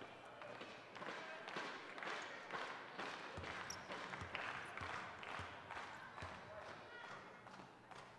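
A crowd claps in a steady rhythm in a large echoing hall.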